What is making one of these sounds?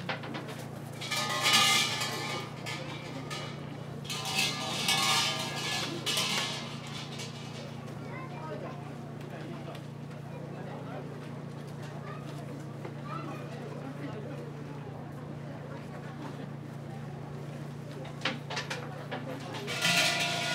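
Small metal bells jingle and ring in short bursts.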